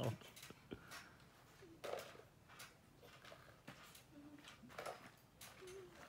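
Children climb onto a trampoline with soft thumps and rattles.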